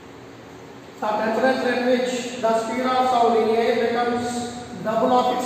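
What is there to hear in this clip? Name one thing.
A man speaks clearly and steadily close by.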